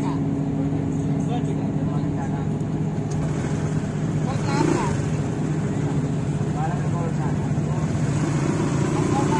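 A ship's engine hums steadily nearby.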